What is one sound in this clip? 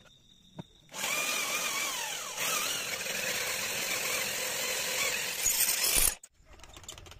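A metal lathe drills into spinning steel with a grinding whine.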